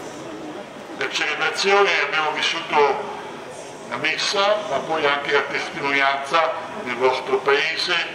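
An elderly man speaks solemnly through a microphone and loudspeakers.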